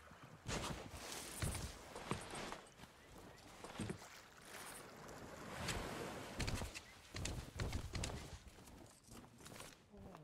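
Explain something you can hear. Sea waves wash gently against a shore.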